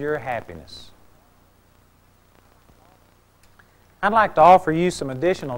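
A middle-aged man speaks calmly, with a pause.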